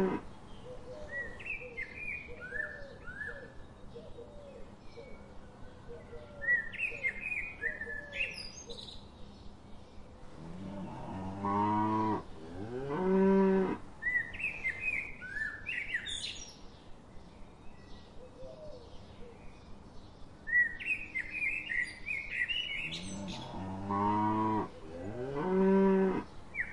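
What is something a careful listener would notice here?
Cows tear and munch grass close by.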